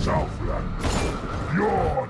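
A heavy blade swings and strikes with a thud.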